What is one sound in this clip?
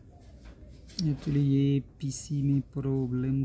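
A phone plays a short startup melody.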